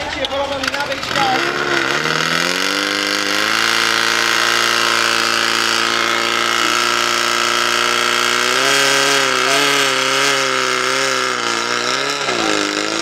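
A pump engine revs up and then roars steadily.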